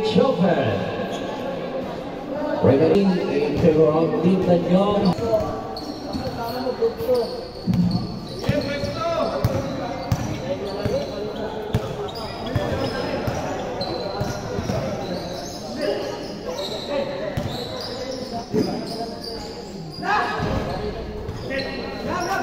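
Young men call out and talk loudly across a large echoing hall.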